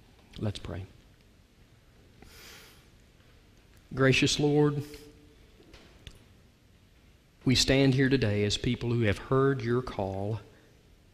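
A man speaks slowly and deliberately into a microphone in a large echoing hall.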